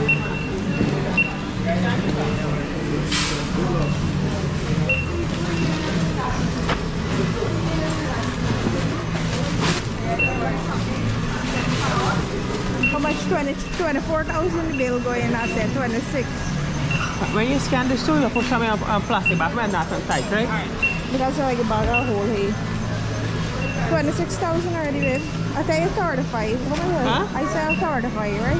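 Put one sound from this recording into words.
A checkout scanner beeps again and again.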